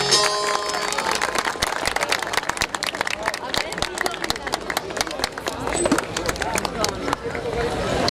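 A large crowd claps outdoors.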